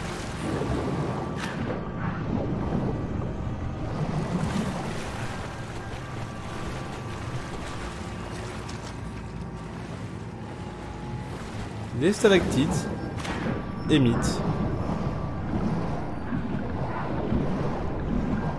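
Bubbles gurgle underwater.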